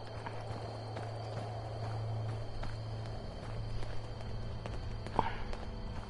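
Footsteps run on a hard road.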